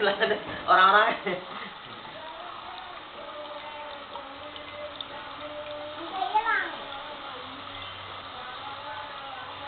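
Water trickles and splashes down a small waterfall.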